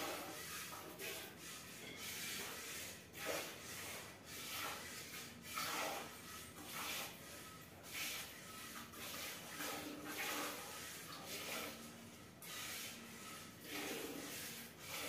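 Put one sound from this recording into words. Milk squirts into a pail in quick rhythmic hissing bursts.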